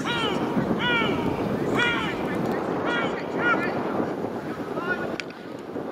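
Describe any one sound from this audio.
Young men shout to each other across an open playing field.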